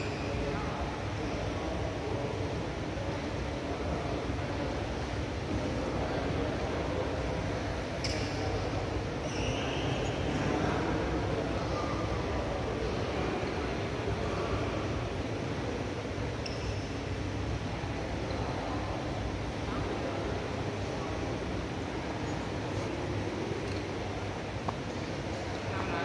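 Men's voices chatter and call out in a large echoing hall.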